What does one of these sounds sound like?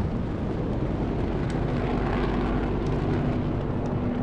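A deep, heavy rumble rolls as a huge creature smashes through a building.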